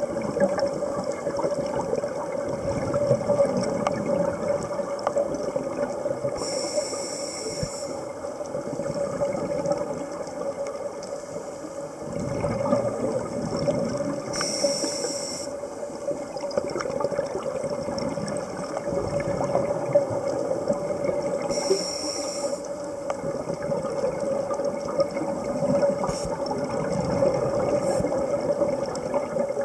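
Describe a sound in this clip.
Scuba bubbles gurgle and rumble underwater as divers exhale.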